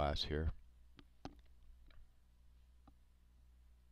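Small plastic and metal parts click and tap softly.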